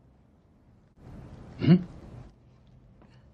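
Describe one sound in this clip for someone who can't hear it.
A young man speaks quietly, close by.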